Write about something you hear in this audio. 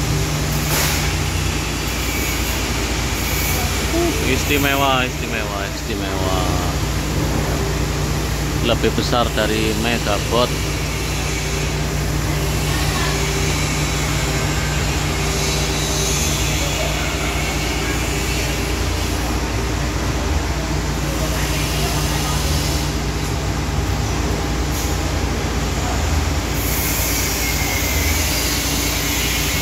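A heavy motor hums steadily.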